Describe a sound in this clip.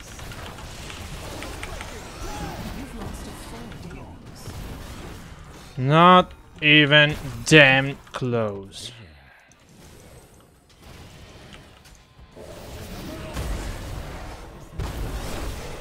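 Magical blasts and clashes sound from a fantasy battle game.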